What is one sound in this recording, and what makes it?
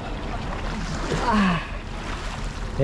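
Men talk and call out to each other outdoors.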